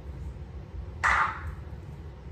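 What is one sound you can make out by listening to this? A spray bottle spritzes once.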